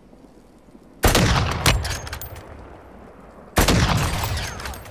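A rifle fires two loud shots that echo away.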